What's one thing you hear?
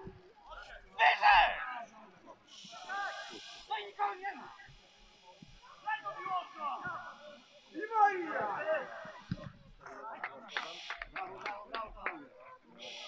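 Men shout to each other across an open football pitch outdoors.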